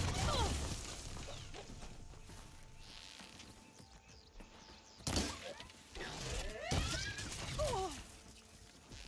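A robotic beast screeches and whines.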